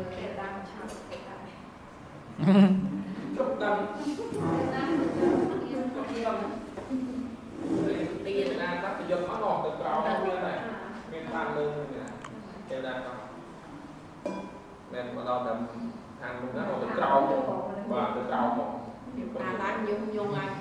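A man speaks steadily, heard through a microphone in a room.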